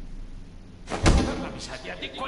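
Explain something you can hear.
A fist bangs hard on a table.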